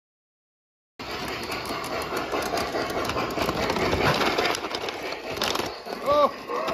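A toy train rumbles and clatters along its track.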